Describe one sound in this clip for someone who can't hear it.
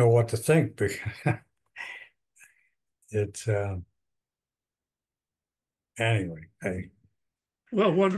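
An elderly man talks calmly over an online call.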